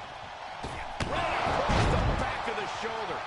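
A body slams heavily onto a wrestling mat with a loud thud.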